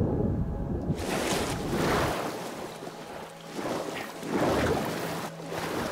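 Water splashes as a swimmer surfaces and paddles.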